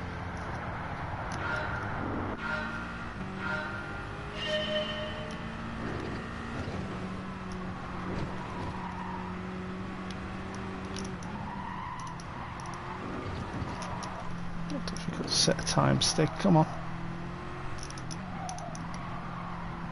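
A racing car engine roars and revs up through the gears.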